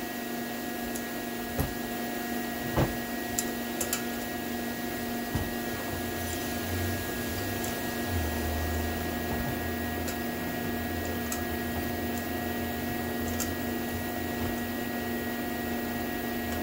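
Metal tools click and scrape against a metal engine part.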